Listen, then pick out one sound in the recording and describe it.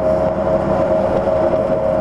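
A heavy truck rumbles past close by.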